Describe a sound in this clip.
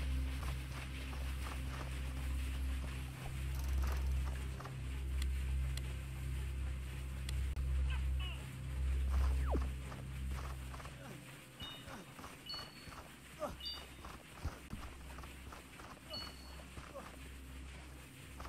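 Footsteps patter softly on stone.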